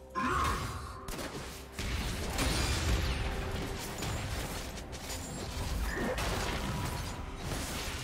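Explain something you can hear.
Magic spells whoosh and crackle in a game fight.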